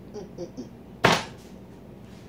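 A glass bottle knocks down on a counter.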